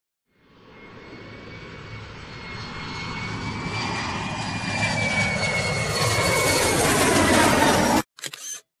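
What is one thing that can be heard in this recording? A small model plane's electric motor whines, growing louder as it approaches.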